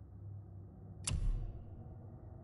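A short sharp menu click sounds.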